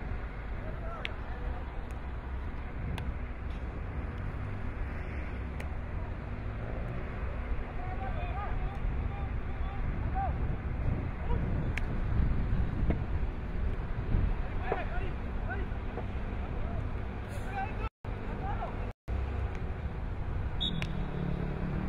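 Hockey sticks click against a ball on a hard pitch.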